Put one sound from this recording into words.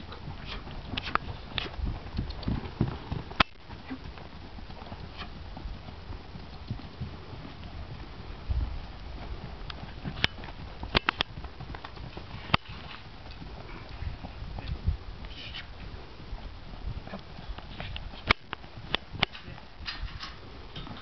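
A ridden horse canters with hoofbeats thudding on packed dirt.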